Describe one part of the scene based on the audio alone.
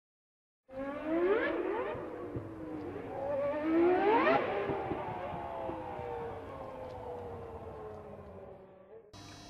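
A racing car engine revs hard, rising and falling in pitch as it roars by.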